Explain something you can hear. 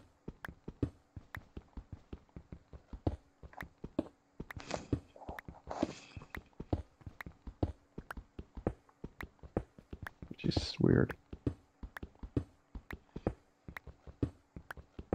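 A pickaxe taps rapidly and steadily on stone.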